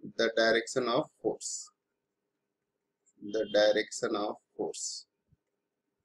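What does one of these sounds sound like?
A man speaks calmly and clearly into a close microphone, explaining in a lecturing tone.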